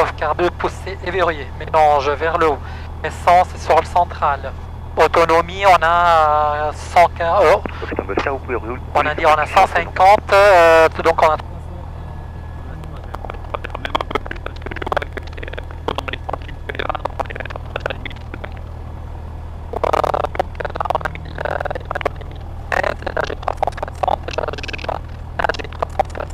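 An aircraft engine hums steadily at low pitch.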